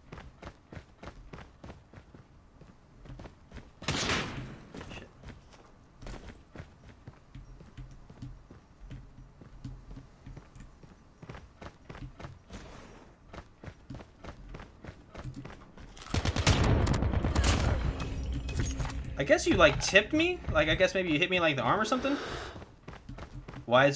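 Footsteps patter quickly and steadily.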